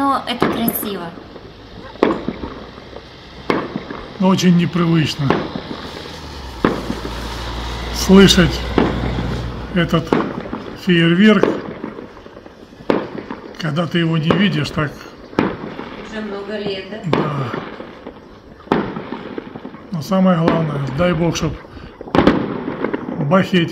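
Fireworks bang and pop in the distance outdoors.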